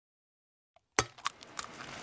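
An egg cracks sharply.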